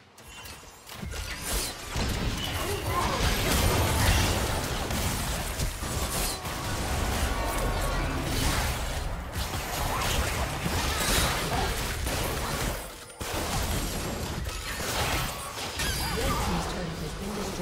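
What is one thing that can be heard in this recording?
Game spells blast and crackle in a rapid, busy fight.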